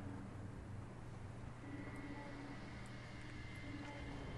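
Wind rushes softly past a gliding bird.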